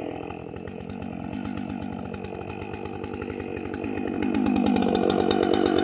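A man pulls a chainsaw's starter cord.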